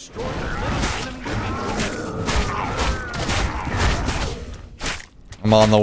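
Weapons clash and magic blasts in a video game fight.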